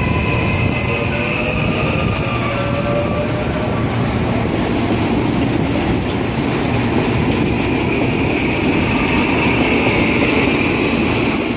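An electric train rumbles past close by, its wheels clattering on the rails.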